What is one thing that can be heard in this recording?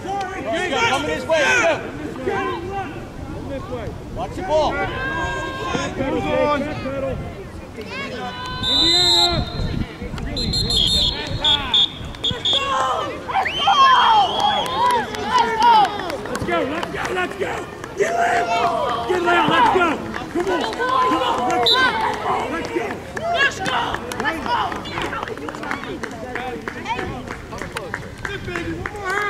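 Children call out to each other across an open field.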